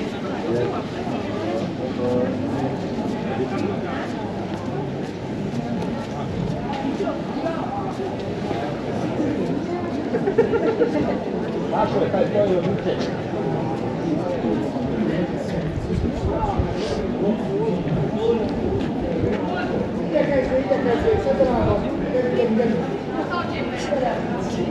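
Footsteps tap on paving stones.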